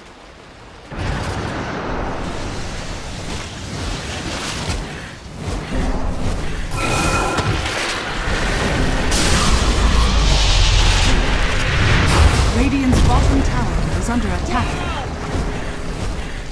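Game fight sounds clash and crackle loudly.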